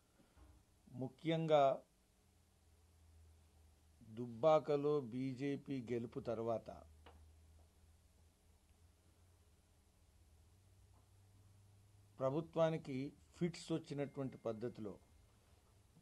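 A middle-aged man speaks calmly into microphones, with pauses.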